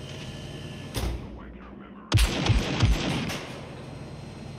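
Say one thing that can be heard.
A heavy metal door slides with a loud whoosh and thud.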